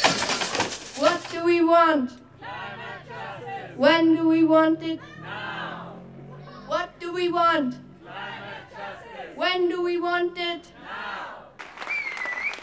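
A young girl sings into a microphone, heard through loudspeakers outdoors.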